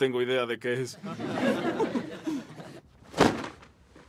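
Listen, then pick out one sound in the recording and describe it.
A group of teenagers laughs together.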